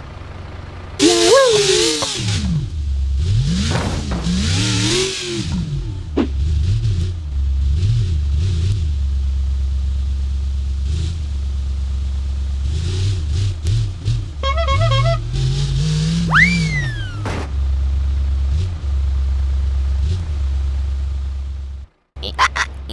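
A car engine hums and revs up and down.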